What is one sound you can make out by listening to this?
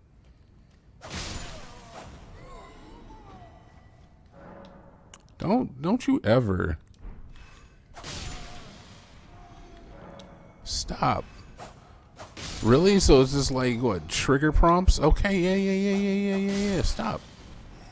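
Swords swing and strike in a fight.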